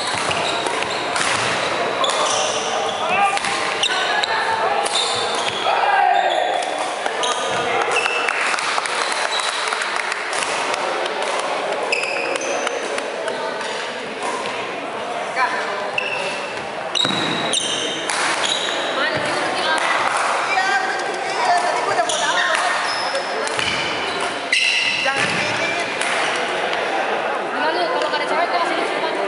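Voices of men and women chatter and call out in a large echoing hall.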